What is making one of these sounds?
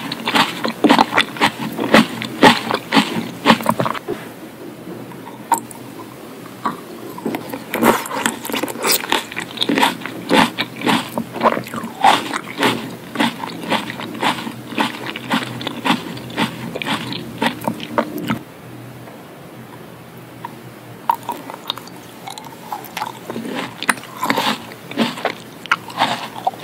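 Wet mouth sounds click and smack close to a microphone.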